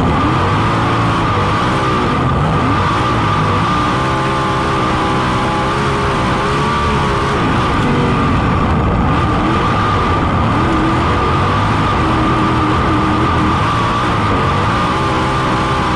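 A race car engine roars loudly up close, its pitch rising and falling as it revs.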